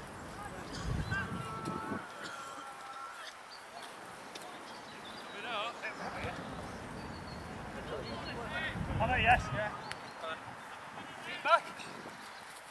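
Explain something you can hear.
Young men shout to each other across an open field, from a distance.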